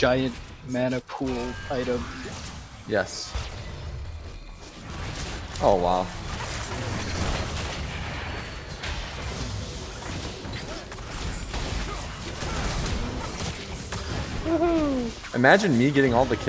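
Game spell effects whoosh, clash and crackle in a busy fight.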